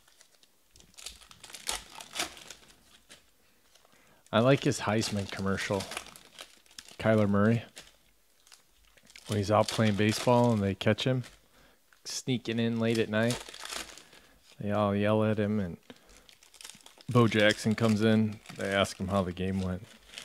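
Foil card packs crinkle and tear as they are ripped open.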